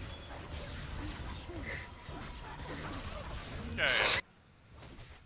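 Fantasy battle effects clash and crackle as spells are cast.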